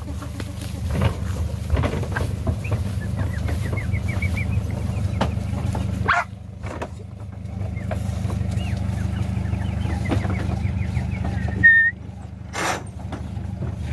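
A metal truck gate rattles and clanks.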